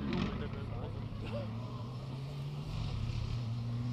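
A second rally car engine drones from far off as the car approaches.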